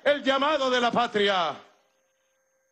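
A man speaks loudly and with animation into a microphone over loudspeakers.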